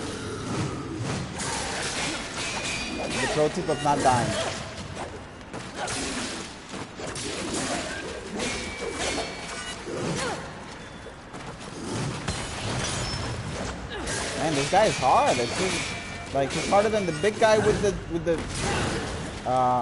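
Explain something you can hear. Swords clash and slash in a fight.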